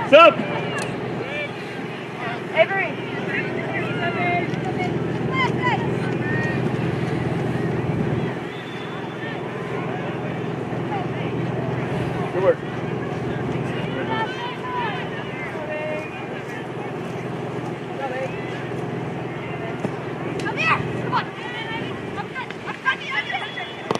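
Young female players shout to each other across an open field.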